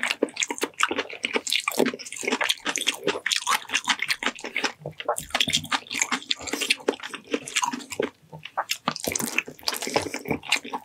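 A man chews wet, sticky food loudly and close up.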